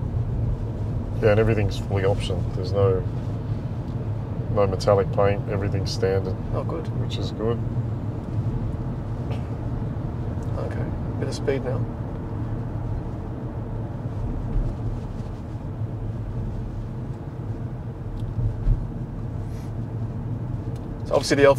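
A car's tyres and engine hum in a steady low rumble.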